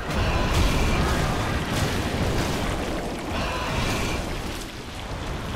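A sword swings and clangs against a hard hide.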